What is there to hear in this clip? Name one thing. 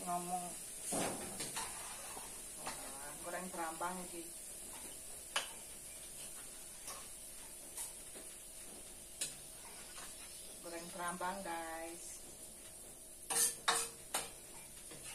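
Utensils clink against a pan.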